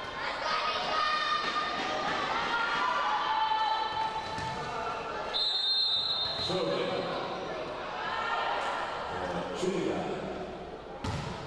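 Young women shout and call out to each other in a large echoing hall.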